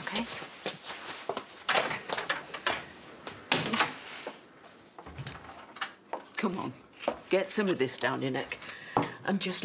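A second woman speaks calmly, close by.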